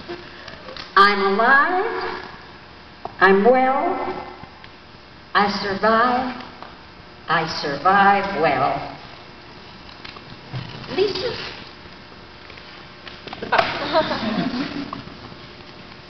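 An elderly woman speaks animatedly into a microphone, heard through a loudspeaker in an echoing hall.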